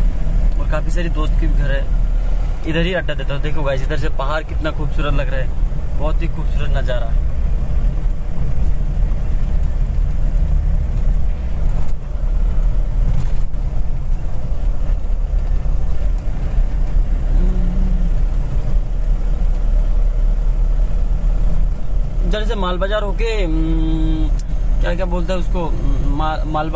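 A car engine and tyres rumble steadily while driving on a smooth road.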